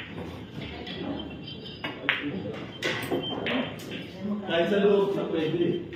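Pool balls clack together and roll across the table.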